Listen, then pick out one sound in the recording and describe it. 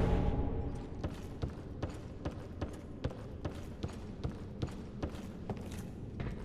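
Heavy armoured footsteps clank steadily on stone.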